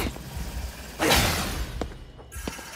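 A shimmering magical burst whooshes and crackles.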